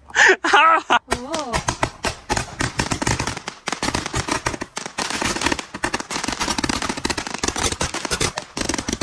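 A handheld firework shoots off with rapid crackling bursts outdoors.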